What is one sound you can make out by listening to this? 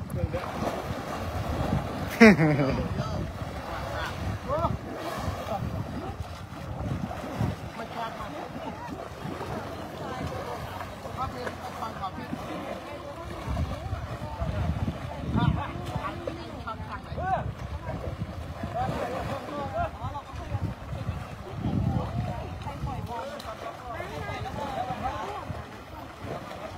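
Water splashes and churns as elephants wade and roll in shallow water.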